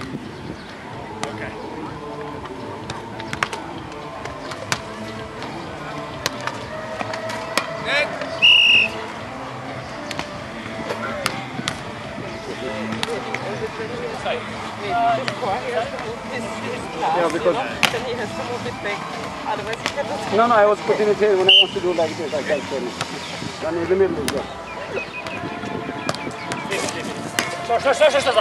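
A volleyball is struck with dull slaps.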